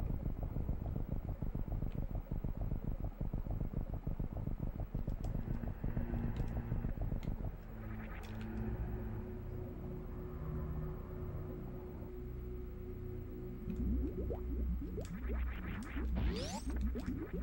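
Retro electronic video game music plays.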